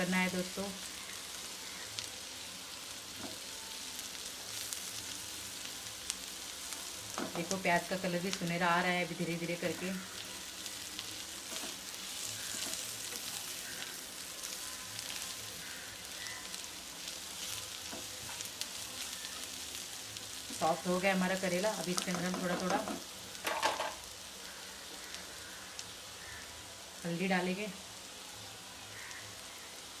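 Food sizzles steadily in a hot frying pan.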